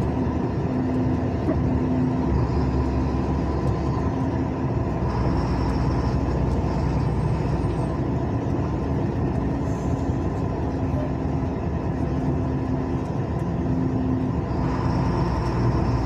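A vehicle's engine drones steadily while driving on a road.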